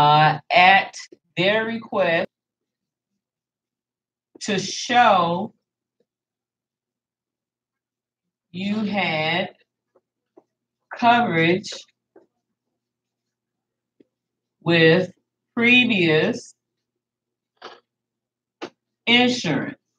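A woman speaks calmly in short phrases, close by, with pauses between them.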